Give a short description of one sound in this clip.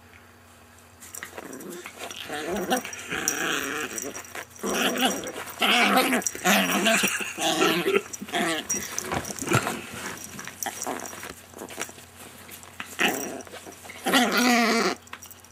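A small dog growls playfully up close.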